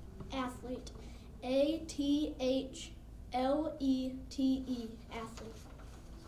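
A young boy speaks into a microphone.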